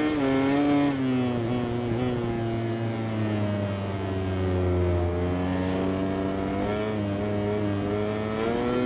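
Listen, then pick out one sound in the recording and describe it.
A motorcycle engine winds down as the rider brakes, then revs up again.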